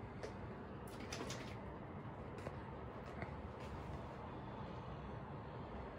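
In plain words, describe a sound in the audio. An aerosol spray can hisses in short bursts.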